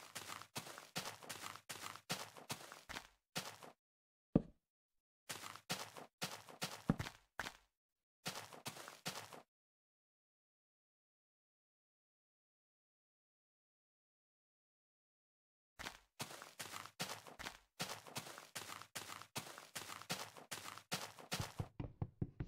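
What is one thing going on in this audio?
Footsteps thud steadily on grass and wooden boards.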